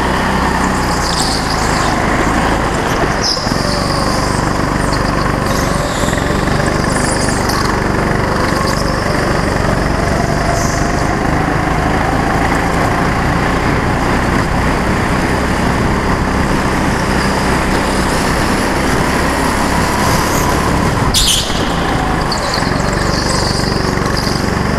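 Kart tyres squeal on a smooth floor in the turns.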